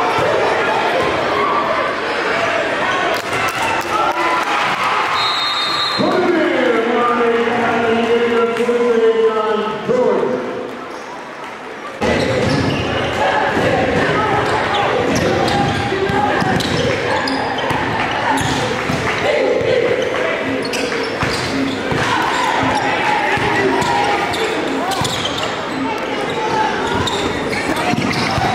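A crowd cheers and chatters in a large echoing gym.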